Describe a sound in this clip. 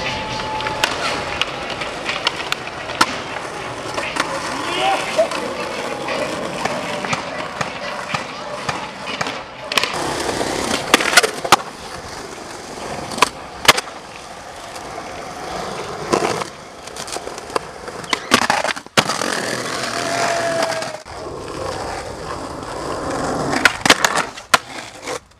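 Skateboard wheels roll and rumble over pavement.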